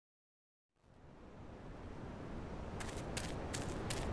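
Footsteps tread on dirt.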